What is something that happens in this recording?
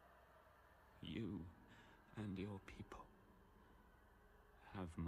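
A man speaks calmly and slowly.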